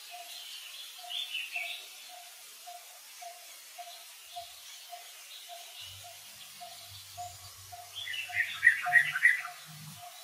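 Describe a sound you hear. A baby monkey squeaks and cries nearby.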